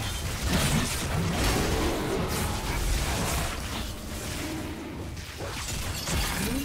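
Spell effects crackle and blast in a video game battle.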